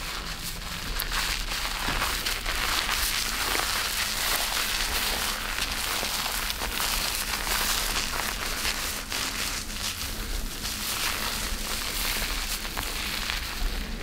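Fingers squish and crackle through soapy lather in hair, very close.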